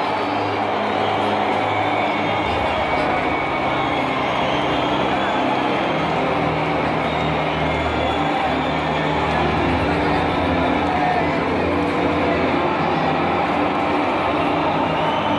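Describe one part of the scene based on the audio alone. Nearby fans cheer and shout loudly.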